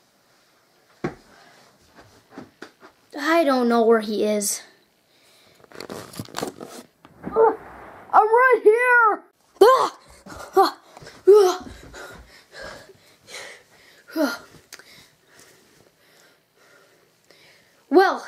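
A boy speaks with animation close by.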